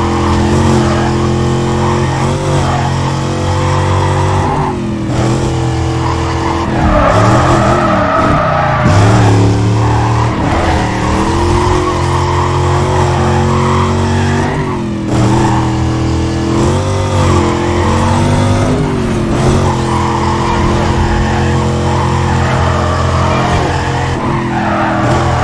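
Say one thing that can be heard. A V8 muscle car engine roars at high speed.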